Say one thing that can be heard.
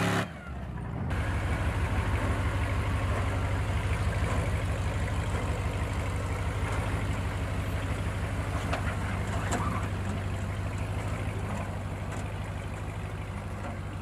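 A truck engine rumbles low and steady while crawling slowly over rock.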